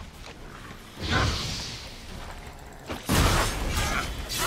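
A sword strikes a creature with heavy, crackling hits.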